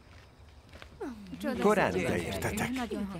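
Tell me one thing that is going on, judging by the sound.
A group of men and women sing together nearby.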